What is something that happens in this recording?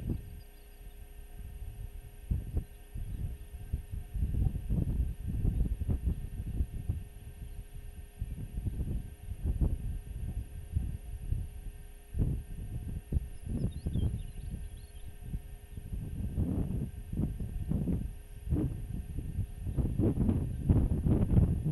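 Wind gusts and buffets loudly outdoors, rising and falling.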